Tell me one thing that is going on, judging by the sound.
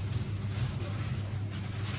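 A gloved hand sets soft sweets down on a metal tray with a faint rustle.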